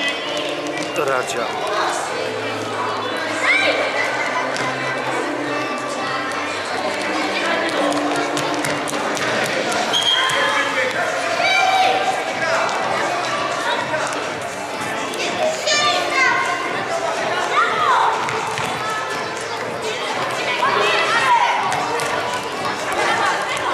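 Children shout and call out during a game in a large echoing hall.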